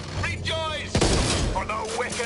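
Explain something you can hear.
A gun fires a sharp shot.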